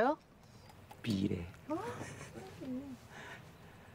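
A young man laughs softly.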